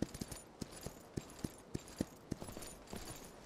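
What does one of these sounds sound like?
A horse's hooves thud steadily on the ground at a trot.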